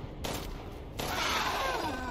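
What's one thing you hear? A creature groans and snarls.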